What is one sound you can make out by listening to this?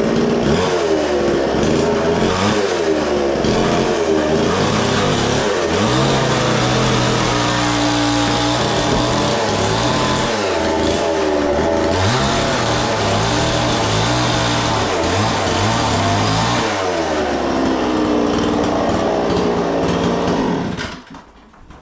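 A chainsaw runs loudly and revs up and down as it cuts.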